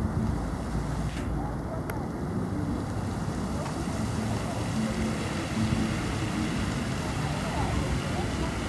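A jet of water sprays and splashes steadily into a pond.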